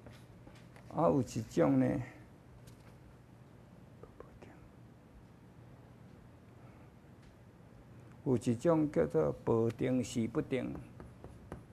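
A man speaks calmly into a microphone in short phrases.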